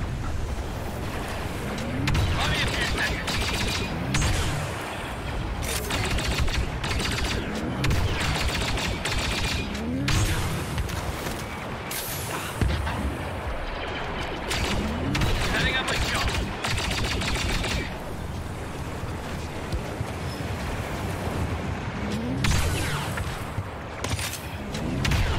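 Laser shots crack and zap in the distance.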